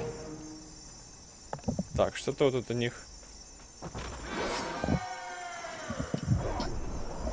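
Magical spell effects whoosh and crackle in bursts.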